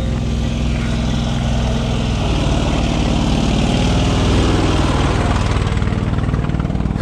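A tractor engine rumbles, grows louder as it passes close by, then fades.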